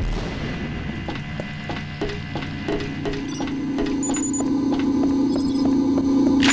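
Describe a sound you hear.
Footsteps clank steadily on a metal grating floor.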